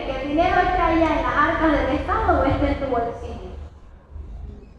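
A woman speaks loudly and with animation through a microphone and loudspeaker, outdoors.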